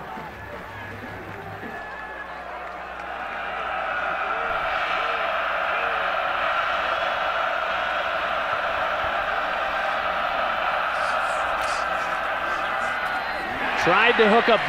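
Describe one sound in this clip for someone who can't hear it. A large stadium crowd cheers and roars, swelling louder.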